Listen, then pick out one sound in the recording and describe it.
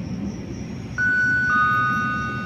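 A train horn sounds in the distance.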